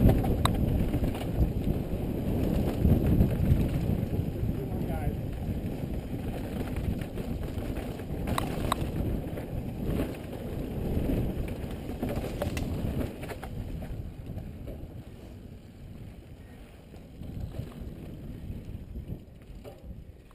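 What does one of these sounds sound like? Mountain bike tyres crunch over a dirt and rock trail.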